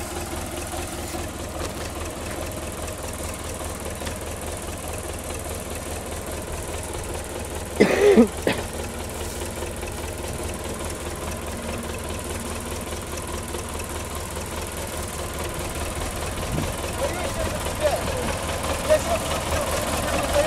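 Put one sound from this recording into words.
A tractor engine idles steadily nearby.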